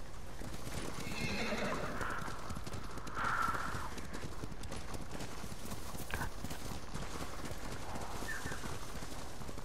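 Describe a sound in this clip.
Horse hooves thud steadily on snow at a gallop.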